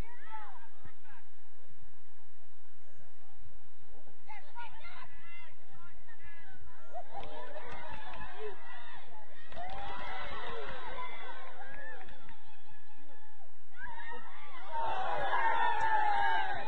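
Young women shout to each other on an open field, heard from a distance.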